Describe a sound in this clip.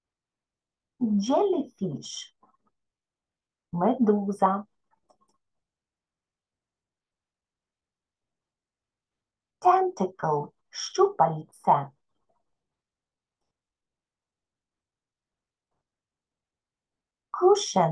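A woman speaks calmly and clearly through an online call, pausing between words.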